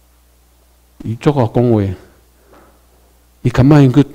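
A man speaks slowly and clearly through a microphone and loudspeakers in a large room, with pauses between phrases.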